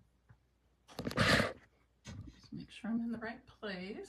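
A middle-aged woman speaks close to a microphone.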